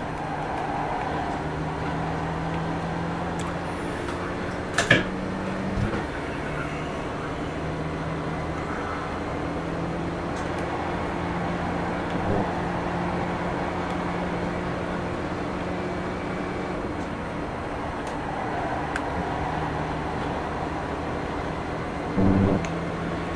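A racing car engine drones steadily through speakers.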